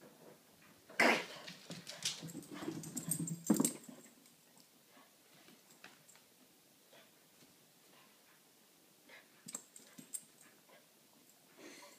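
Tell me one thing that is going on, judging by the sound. A small dog's paws thump softly on carpeted stairs.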